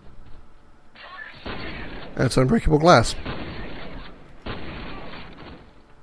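Gunfire from a video game rattles in short bursts.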